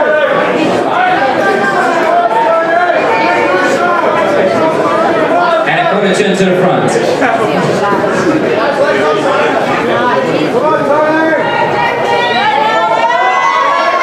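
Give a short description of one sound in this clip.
A crowd shouts and cheers loudly in a large hall.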